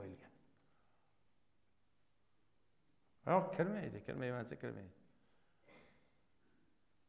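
A middle-aged man speaks into a microphone in a slow, preaching way, with pauses.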